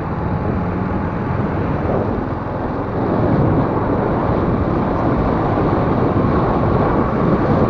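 Wind rushes past as a motorbike rides along a road.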